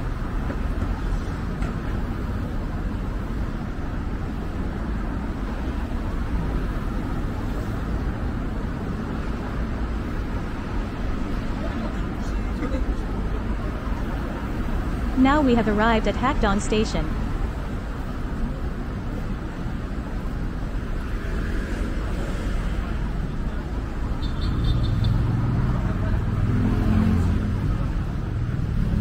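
Distant city traffic rumbles steadily outdoors.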